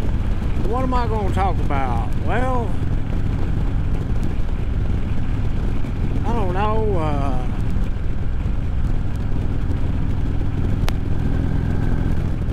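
A motorcycle engine rumbles low and steady.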